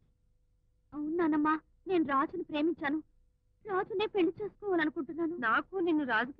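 A woman speaks loudly and with animation nearby.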